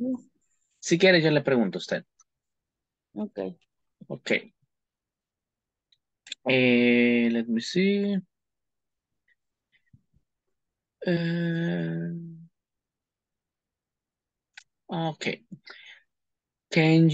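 A young man speaks calmly over an online call, in short phrases with pauses.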